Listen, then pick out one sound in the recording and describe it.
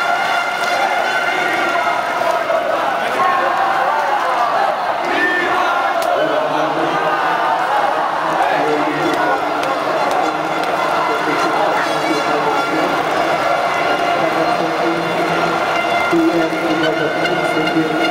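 A large crowd of men chants and sings loudly together in a big echoing stadium.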